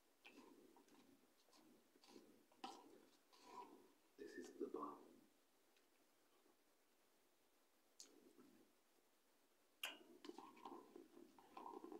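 A metal spoon scrapes inside a plastic cup.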